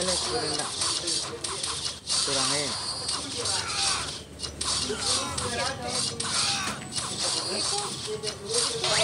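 Game battle effects play with quick clashing hits.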